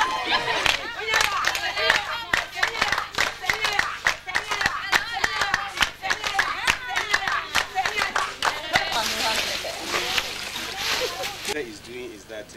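A crowd of people sings and chants loudly outdoors.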